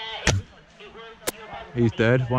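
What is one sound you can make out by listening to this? An airsoft rifle fires sharp, snapping shots close by.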